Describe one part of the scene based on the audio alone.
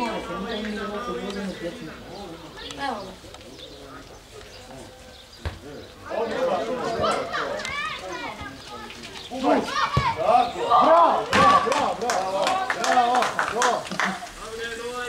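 Men shout and cheer nearby outdoors.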